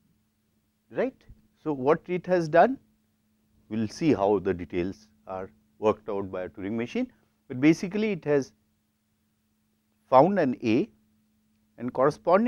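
A man speaks calmly and clearly, as if explaining, close to a microphone.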